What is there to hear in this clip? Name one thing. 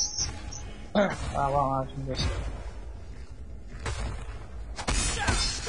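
Weapons strike enemies with heavy thuds.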